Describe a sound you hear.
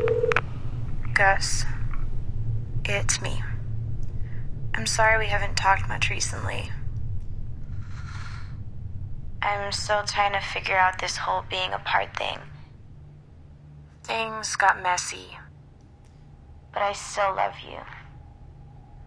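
A young woman speaks softly and slowly on a phone.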